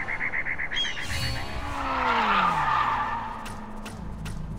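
A whooshing sweep plays as the race ends.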